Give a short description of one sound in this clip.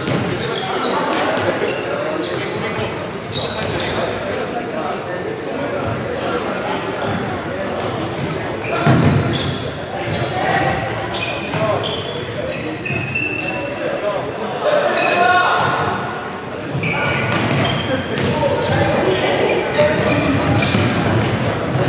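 Players' shoes squeak and thud on a hard floor in a large echoing hall.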